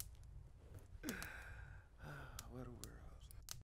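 A man laughs softly.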